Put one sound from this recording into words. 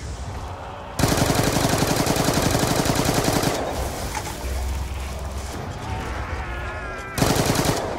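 A rapid-fire gun shoots in long, fast bursts.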